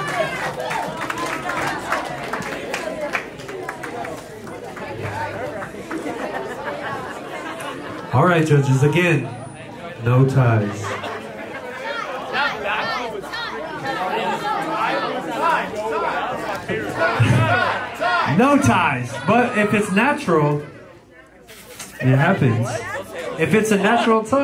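A crowd chatters and cheers loudly.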